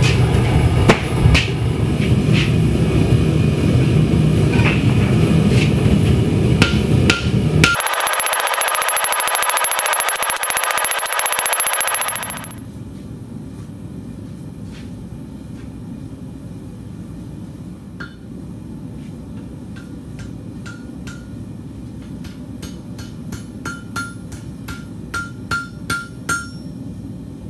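A hammer rings on an anvil in sharp, repeated strikes.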